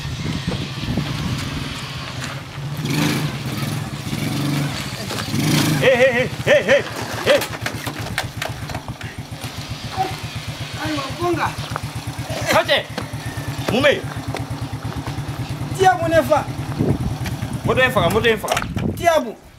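A small motorbike engine putters and idles nearby.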